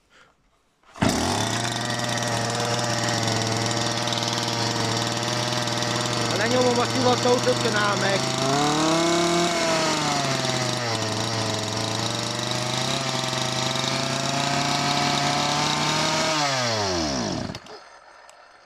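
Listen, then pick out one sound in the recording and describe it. A chainsaw engine starts and idles loudly.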